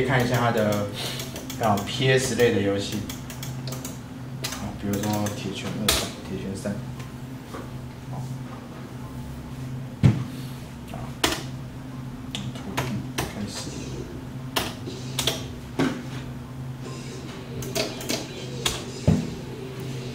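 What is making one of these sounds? Arcade buttons click under quick presses.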